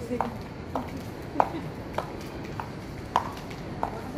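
A man's sandals slap softly on a hard floor.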